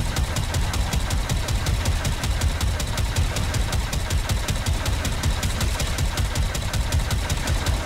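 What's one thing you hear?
Rapid energy weapons fire in quick bursts with crackling zaps.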